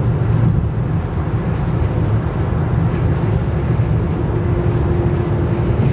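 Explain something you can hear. Lorries roar past close by.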